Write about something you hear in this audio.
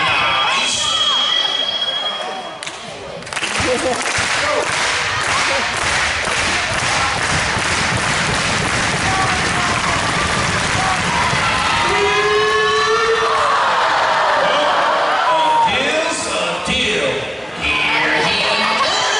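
A large crowd cheers and chatters in an echoing gym.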